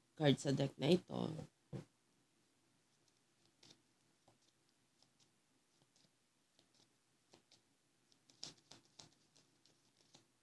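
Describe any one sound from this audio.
Cards shuffle softly.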